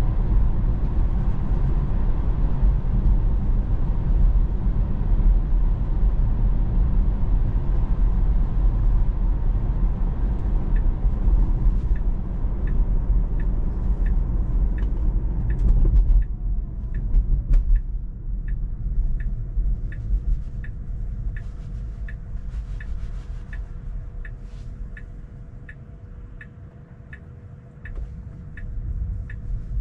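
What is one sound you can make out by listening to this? Tyres rumble steadily on the road from inside a moving car, growing quieter as the car slows.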